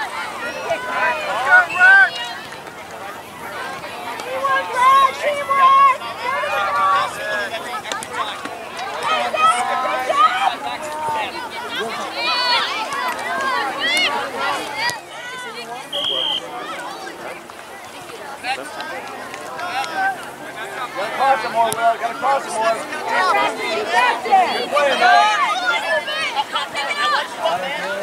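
Young players call out to each other on the field.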